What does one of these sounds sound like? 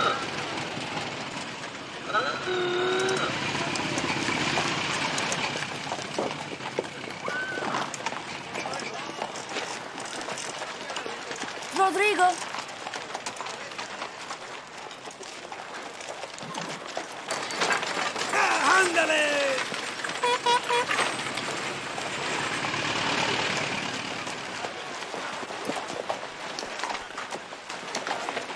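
Hooves clop slowly on packed earth.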